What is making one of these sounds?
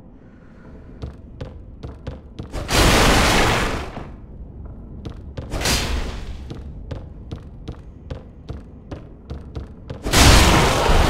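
Armoured footsteps clank steadily on a stone floor.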